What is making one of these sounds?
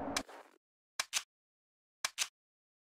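Short menu clicks sound.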